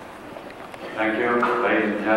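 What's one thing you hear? An elderly man speaks into a microphone over loudspeakers in a large echoing hall.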